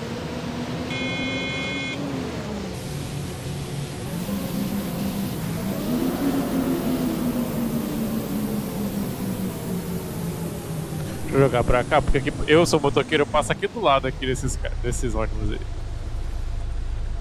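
A bus engine drones, rising and falling in pitch as it drives.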